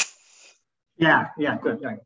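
A younger man speaks through an online call.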